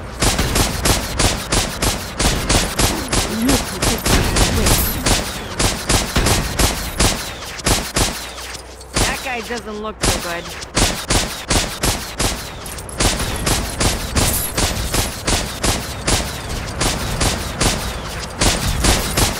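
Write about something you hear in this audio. Guns fire in rapid, steady bursts.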